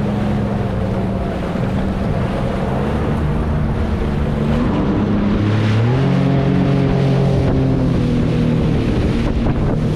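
Water splashes and churns against a hull.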